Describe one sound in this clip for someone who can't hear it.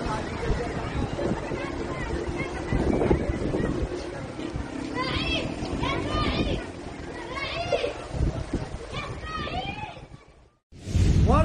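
Floodwater rushes and churns outdoors.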